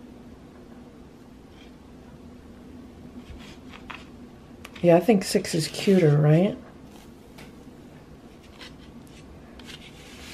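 A knife slices softly through cake.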